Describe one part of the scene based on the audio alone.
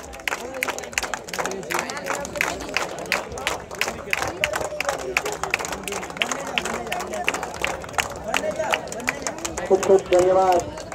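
A crowd of men chatters loudly outdoors.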